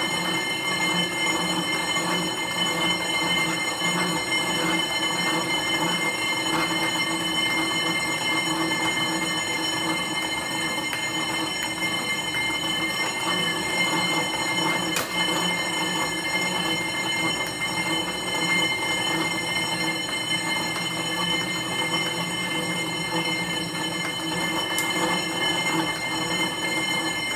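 An exercise bike whirs steadily as a man pedals hard.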